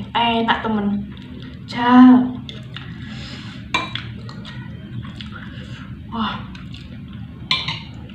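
A metal spoon and fork clink against a plate.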